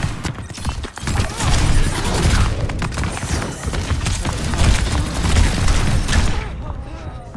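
Rapid gunfire crackles and booms up close.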